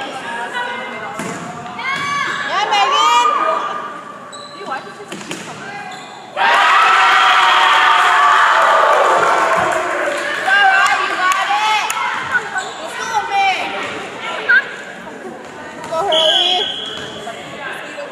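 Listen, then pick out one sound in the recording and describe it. A volleyball is struck with the forearms and hands.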